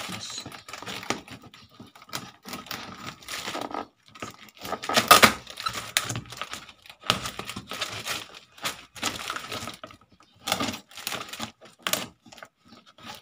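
Cardboard crinkles and rustles under hands.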